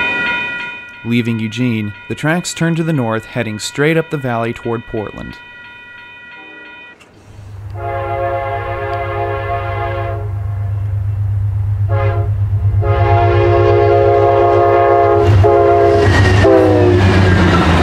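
A train horn blasts loudly several times.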